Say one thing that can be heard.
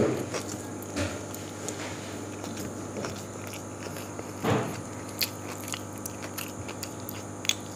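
Fingers squelch and scrape through rice on a metal plate.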